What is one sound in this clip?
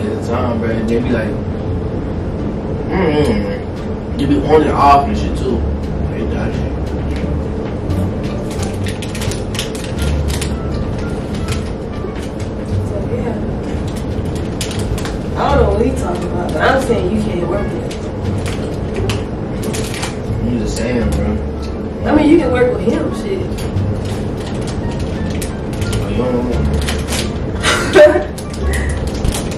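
Young men talk casually nearby.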